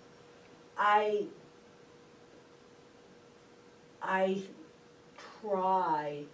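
A middle-aged woman speaks with animation through a microphone in short bursts.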